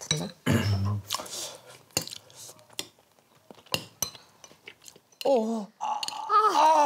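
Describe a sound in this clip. A man slurps noodles.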